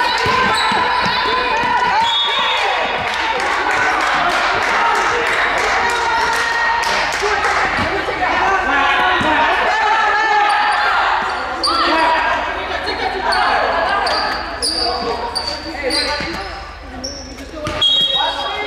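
Young players shout and call out to each other across the court.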